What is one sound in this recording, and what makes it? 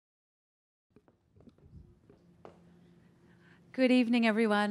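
Footsteps tap softly on a stage.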